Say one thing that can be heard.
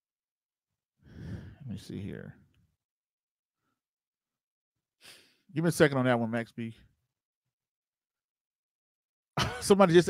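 A man speaks into a close microphone in short bursts, calmly and then with animation.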